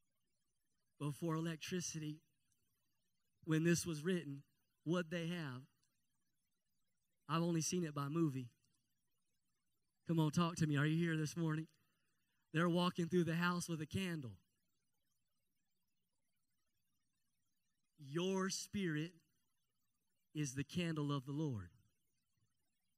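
A man speaks with animation into a microphone, in bursts with pauses.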